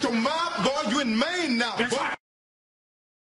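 A man shouts loudly in a singing, wavering voice.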